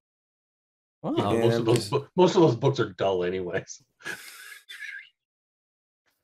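Men laugh over an online call.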